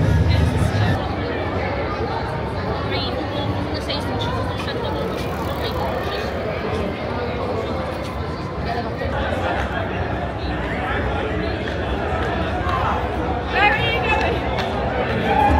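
A crowd of young adults chatters along a busy street.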